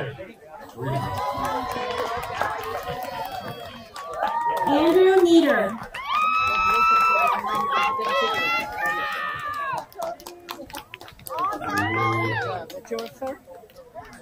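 A crowd of graduates cheers and whoops.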